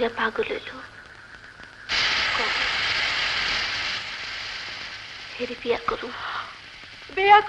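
Women talk quietly, close by.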